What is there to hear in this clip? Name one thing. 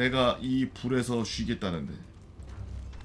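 A man talks with animation into a microphone.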